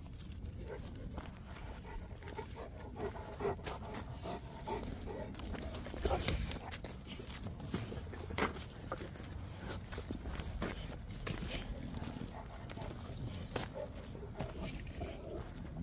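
Dogs' paws scuffle on dry ground.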